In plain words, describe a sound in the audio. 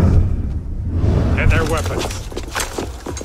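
Swords clash and ring out in a fight.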